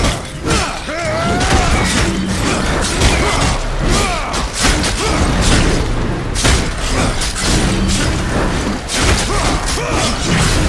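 Weapon blows clash and thud.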